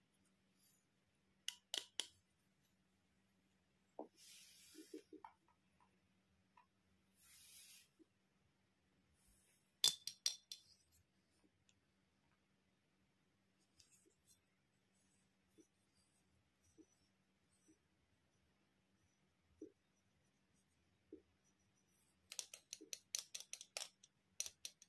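Plastic toys click and rattle as they are handled.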